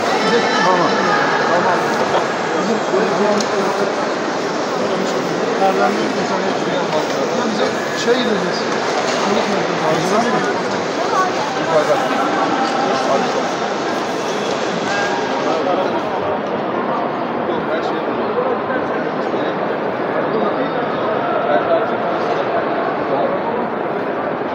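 A crowd of people talk over one another nearby in an echoing hall.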